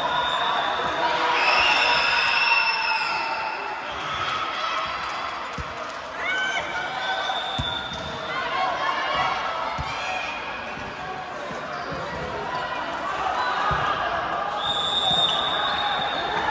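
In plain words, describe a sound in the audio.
Young women shout and call out to each other in a large echoing hall.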